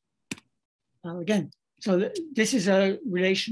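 An elderly man speaks calmly over an online call.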